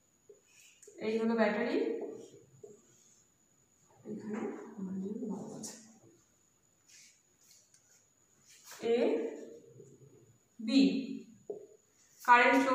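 A woman speaks calmly, explaining, close by.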